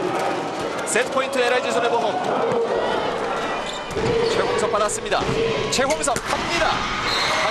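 A volleyball is struck hard several times.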